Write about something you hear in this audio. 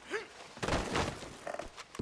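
A fire crackles in a fireplace.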